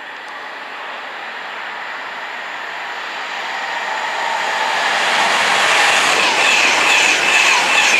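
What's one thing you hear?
A high-speed train approaches and rushes past with a rising, whooshing roar.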